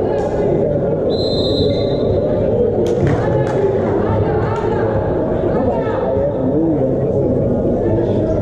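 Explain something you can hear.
Young men shout to each other across a court in a large echoing hall.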